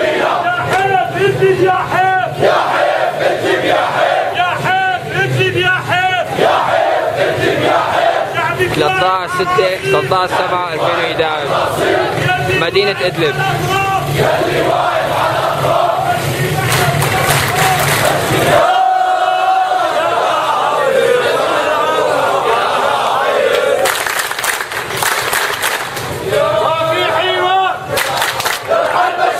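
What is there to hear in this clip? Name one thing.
A large crowd of men chants loudly in unison outdoors.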